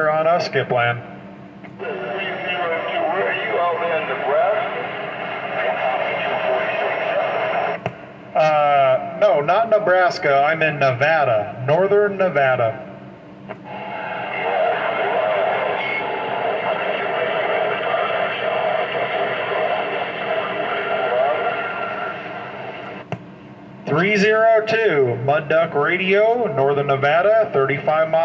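A man talks through a two-way radio loudspeaker, his voice warbling and distorted.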